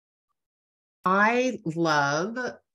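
An older woman speaks with animation over an online call.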